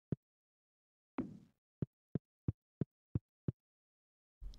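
Game footsteps tap softly in a quick, even rhythm.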